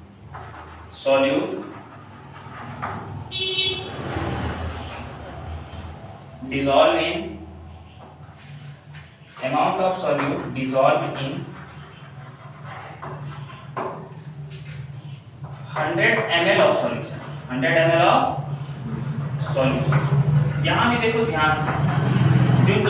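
A young man speaks steadily, like a teacher explaining, close by.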